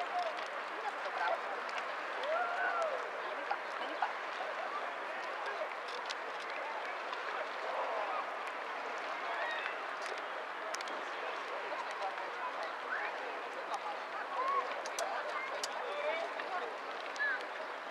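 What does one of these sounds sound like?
Small waves lap gently on open water outdoors.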